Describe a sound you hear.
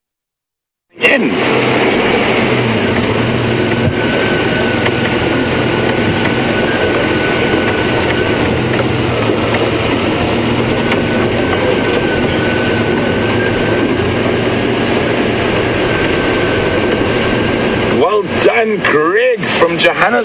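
A vehicle engine drones steadily while driving.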